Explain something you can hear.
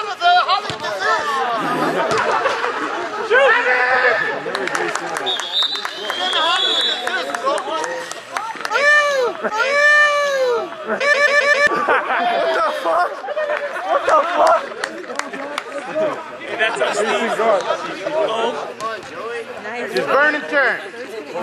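Men shout and cheer across an outdoor field.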